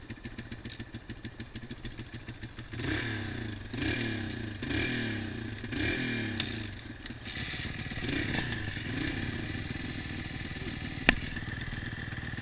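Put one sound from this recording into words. A dirt bike engine idles close by, then revs up and down repeatedly.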